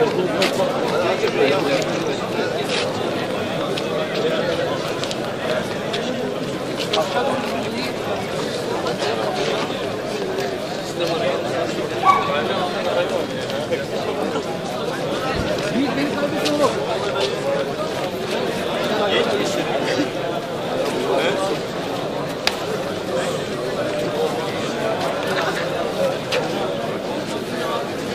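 A crowd of men chatters nearby outdoors.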